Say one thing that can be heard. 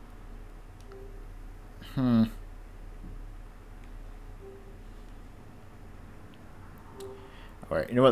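Soft menu tones blip now and then.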